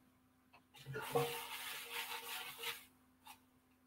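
Paper tickets rustle and rattle in a metal bucket.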